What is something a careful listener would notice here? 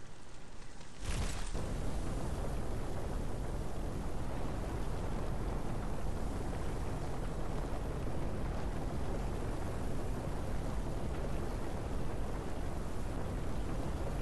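Sand rushes and hisses steadily as something burrows through it.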